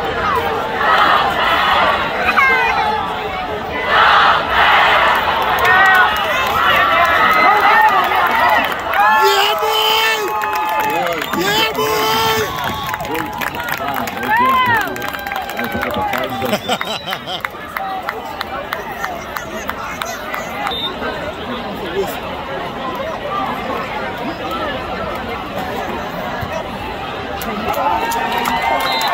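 A large crowd cheers and shouts in an outdoor stadium.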